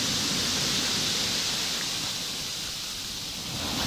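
Pebbles rattle as the water drags back over them.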